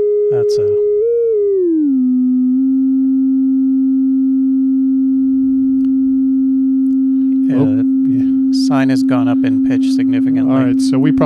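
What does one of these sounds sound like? A steady electronic tone sounds, briefly rising and then sliding lower near the start.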